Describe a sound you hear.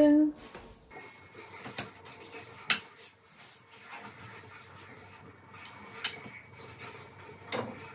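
Dishes clatter and clink on a stove.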